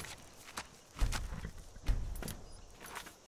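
Heavy thuds strike in a scuffle with a large beast.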